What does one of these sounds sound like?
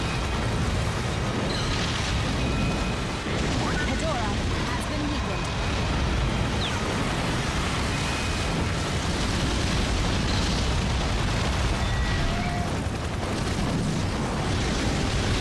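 Water splashes heavily as a giant robot wades through it.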